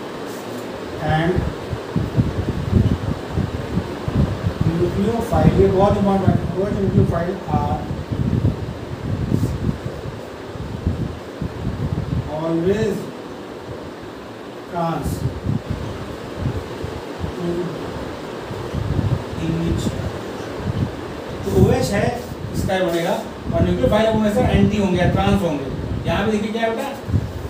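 A middle-aged man explains calmly, close by.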